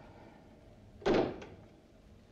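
A telephone handset is put down with a clunk.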